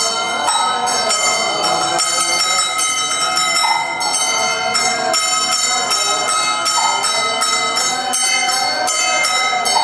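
Men chant together in a steady, rhythmic drone.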